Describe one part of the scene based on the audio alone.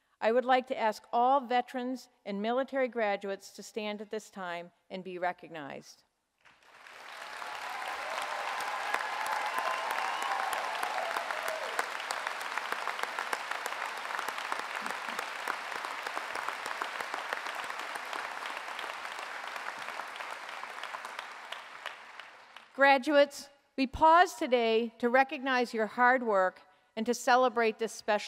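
An elderly woman speaks calmly into a microphone, over loudspeakers in a large hall.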